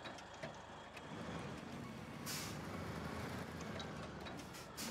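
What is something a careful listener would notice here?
A truck engine revs louder and roars.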